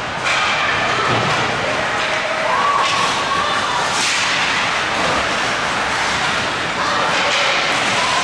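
Young players shout to each other from a distance across the ice.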